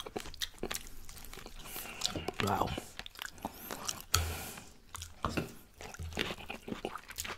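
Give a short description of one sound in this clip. A man chews food with wet, smacking sounds close to a microphone.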